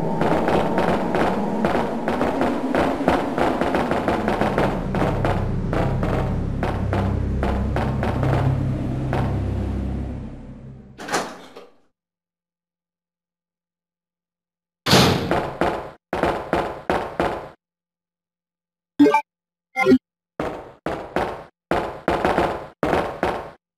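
Footsteps clank quickly on a metal floor.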